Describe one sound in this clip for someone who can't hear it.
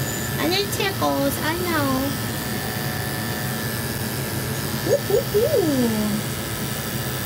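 A small dog whines in short, high bursts.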